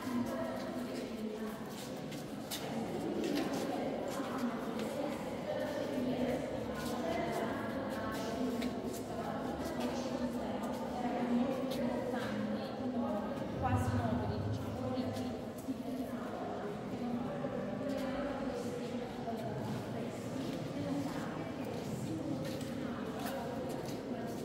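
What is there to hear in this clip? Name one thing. A crowd of adults murmurs and chatters in a large echoing hall.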